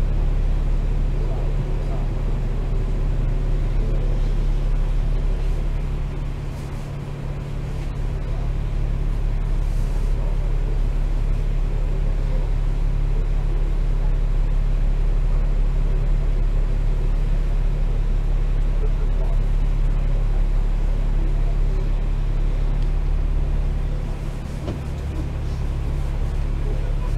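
A bus engine hums and rumbles steadily, heard from inside the bus.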